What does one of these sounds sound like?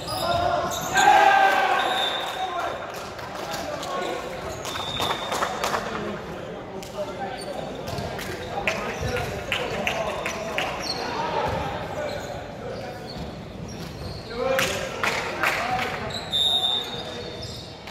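Sneakers squeak on the wooden floor.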